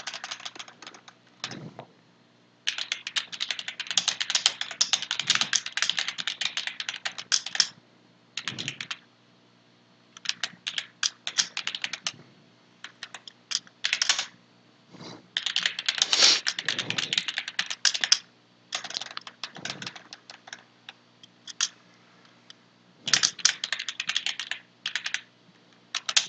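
Keys on a computer keyboard clatter in quick bursts of typing.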